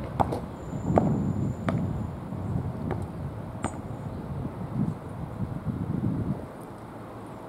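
Wind blows across an open outdoor space.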